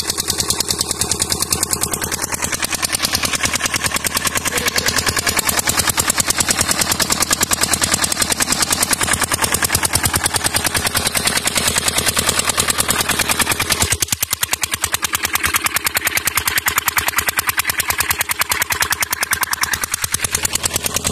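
A small single-cylinder engine chugs loudly and rapidly up close.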